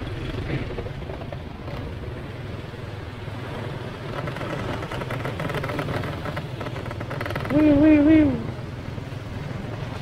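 Other motorbikes and cars pass by on the street.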